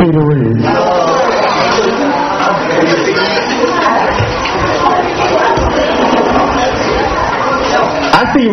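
A crowd of young people talks and cheers loudly.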